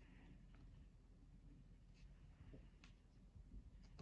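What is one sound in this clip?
A paper page rustles as it is turned.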